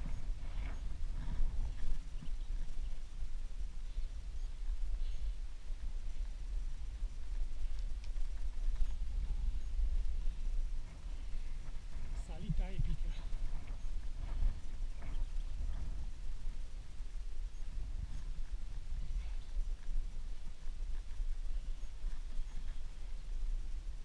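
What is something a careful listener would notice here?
Wind rumbles and buffets steadily while moving fast outdoors.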